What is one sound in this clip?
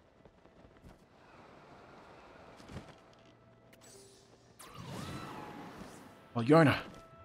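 Wind rushes past steadily during a fast glide.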